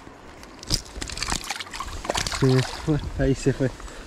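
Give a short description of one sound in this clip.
A small fish splashes back into the water.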